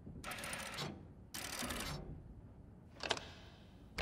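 A stone dial clicks as it turns.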